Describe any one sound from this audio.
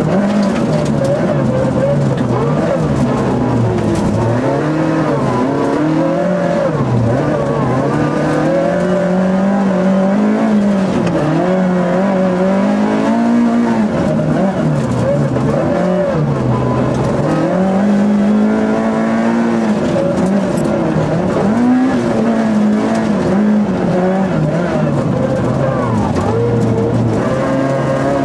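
Tyres crunch and hiss over packed snow.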